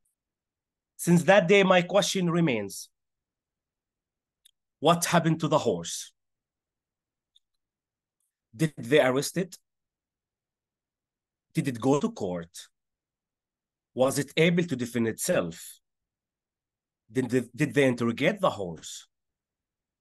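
A man speaks with animation in short bursts over an online call.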